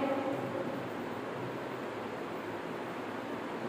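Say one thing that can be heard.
A marker squeaks faintly as it writes on a board.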